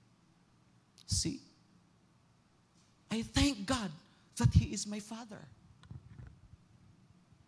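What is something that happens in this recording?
A man speaks into a microphone in short bursts, heard over loudspeakers in a room.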